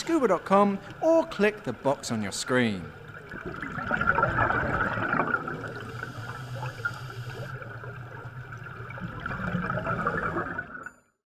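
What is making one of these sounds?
Bubbles rise and gurgle underwater.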